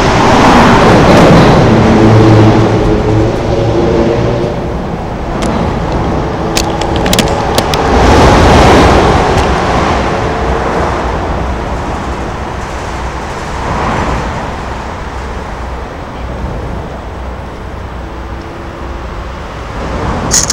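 Wind blows in gusts outdoors.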